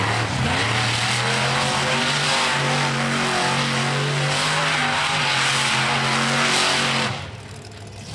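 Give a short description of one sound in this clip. Dirt and gravel spray from spinning tyres.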